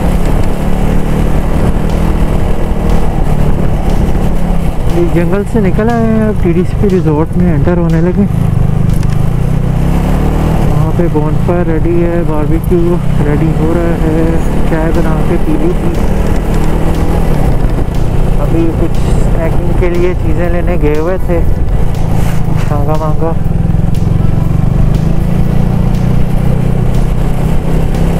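A motorcycle engine rumbles steadily at low speed.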